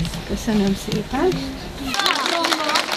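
Children sing together.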